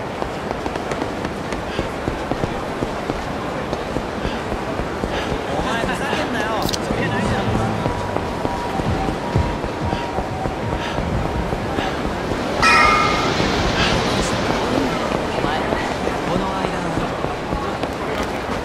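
Running footsteps slap on pavement.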